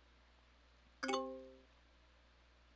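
A short bright chime rings out once.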